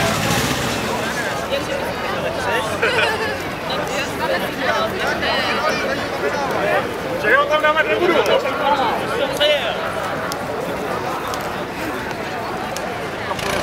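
A crowd of men, women and children chatters outdoors.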